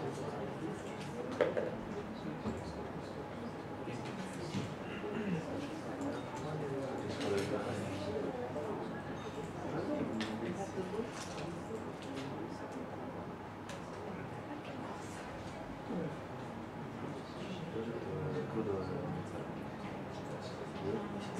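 A man speaks calmly and explains.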